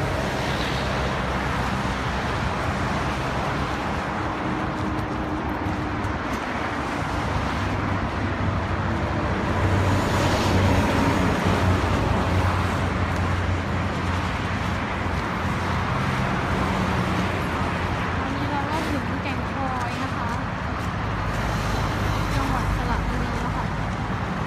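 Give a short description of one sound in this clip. Traffic rumbles past on a busy road.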